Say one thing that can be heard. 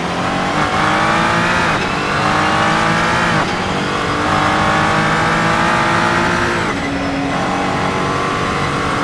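A racing car engine roars loudly, revving up through the gears and dropping in pitch at each gear change.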